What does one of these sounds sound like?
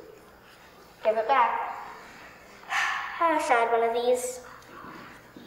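A child speaks clearly and expressively in a room with some echo.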